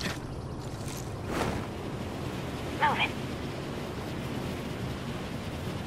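Wind rushes steadily past during a fast fall through the air.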